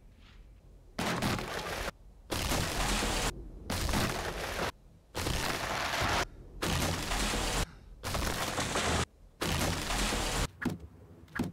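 An axe chops into a tree trunk with repeated heavy blows.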